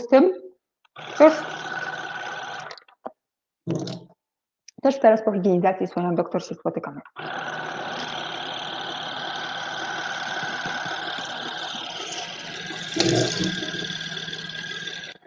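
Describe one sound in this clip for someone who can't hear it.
An electric toothbrush buzzes steadily.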